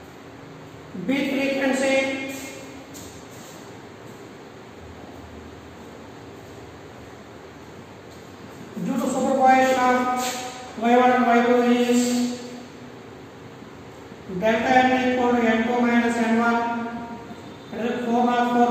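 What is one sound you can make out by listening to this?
A man explains in a clear, raised voice, close by, with pauses between phrases.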